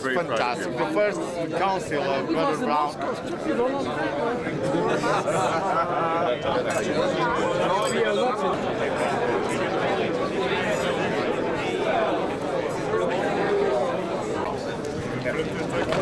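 Several men and women chat and talk over one another close by.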